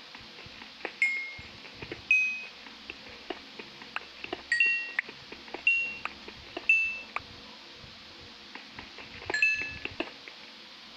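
Small items pop with short, high chimes when picked up.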